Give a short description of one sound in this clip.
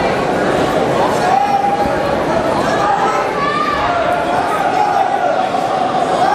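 Men shout instructions loudly from the side.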